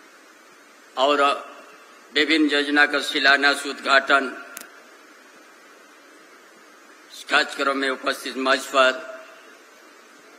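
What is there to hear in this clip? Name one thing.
An elderly man speaks slowly and firmly into a microphone over a loudspeaker, with pauses.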